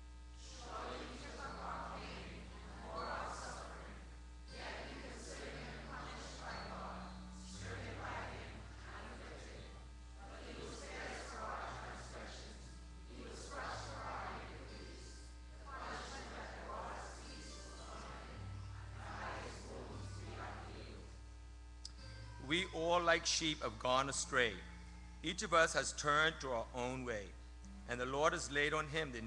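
An older man reads out calmly through a microphone and loudspeakers.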